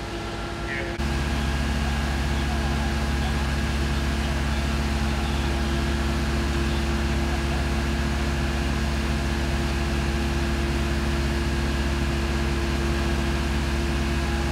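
A truck engine hums steadily and loudly nearby.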